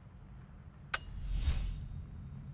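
A brief whoosh swells and fades.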